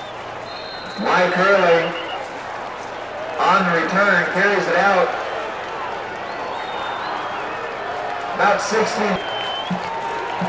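A man's voice announces loudly through a stadium loudspeaker.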